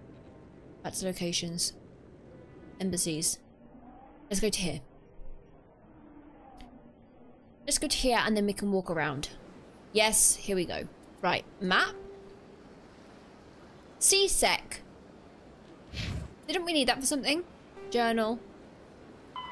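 A young woman talks casually into a nearby microphone, in short bursts.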